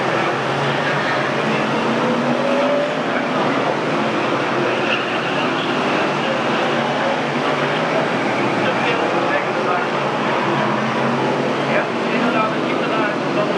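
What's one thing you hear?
Car engines rev up and down as cars take a bend.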